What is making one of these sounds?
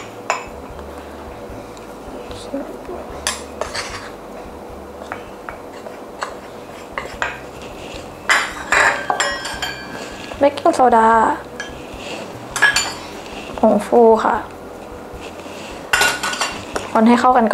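A metal spoon clinks and scrapes against a ceramic mug.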